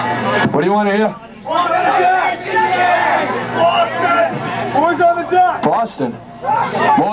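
An electric guitar plays loudly.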